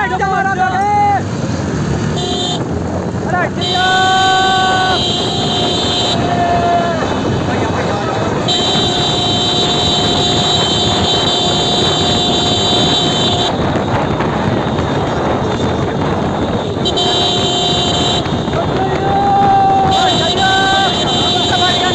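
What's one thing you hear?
Several motorcycle engines rumble steadily close by.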